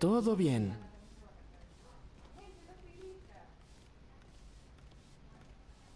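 A broom sweeps across a floor with brisk strokes.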